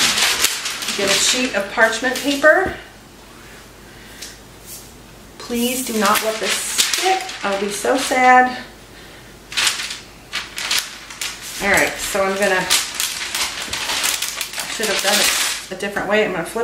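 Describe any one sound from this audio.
A middle-aged woman talks calmly, close by.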